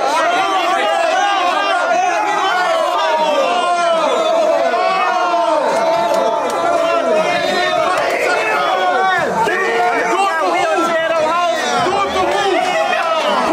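A crowd of young men talk and shout excitedly close by.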